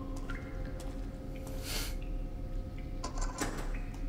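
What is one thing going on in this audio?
A lock clicks open.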